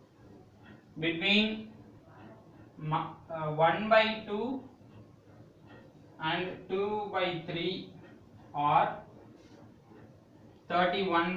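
A man speaks in short phrases, explaining calmly.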